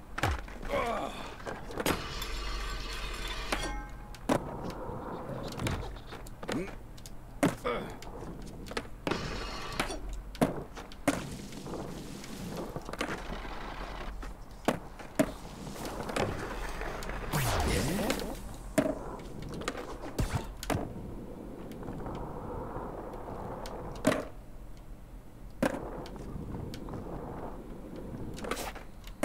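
Skateboard wheels roll and clack on concrete.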